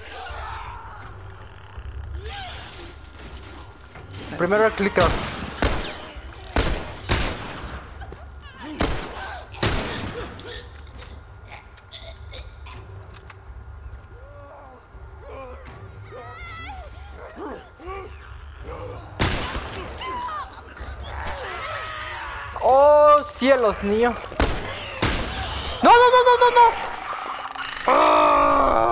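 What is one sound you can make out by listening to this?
A young man talks with animation into a microphone.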